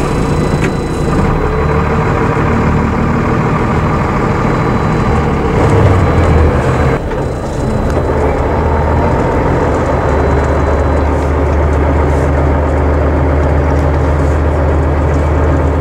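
A bus engine hums steadily and low while driving.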